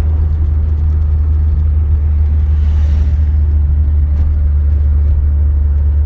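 A car engine hums steadily with a low road rumble inside the cabin.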